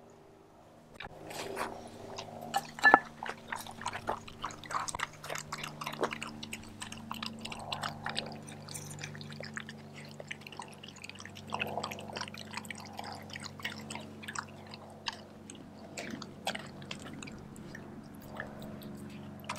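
A dog chews and laps food noisily from a bowl.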